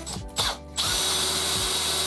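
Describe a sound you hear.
A cordless drill whirs.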